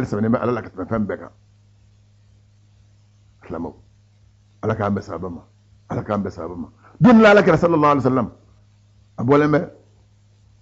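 A man speaks into a microphone in short bursts with pauses.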